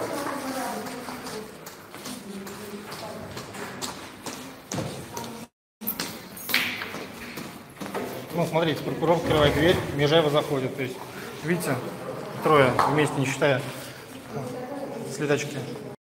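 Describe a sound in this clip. Several adults talk at once in an echoing hallway.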